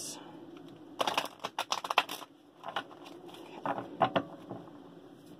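Playing cards are shuffled and riffled.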